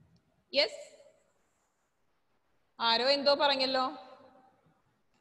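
A young girl speaks out loudly and clearly, close by.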